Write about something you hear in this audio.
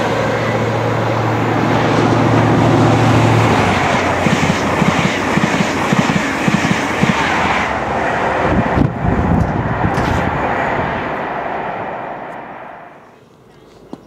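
A passenger train roars past at speed and fades away.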